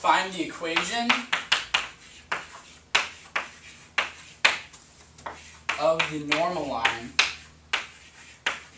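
Chalk taps and scrapes against a board.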